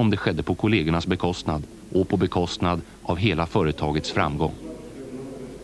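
A man speaks loudly to a room, heard through an old, crackly recording.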